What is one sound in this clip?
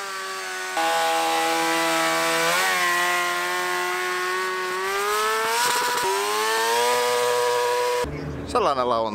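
A motorcycle engine revs loudly at high speed.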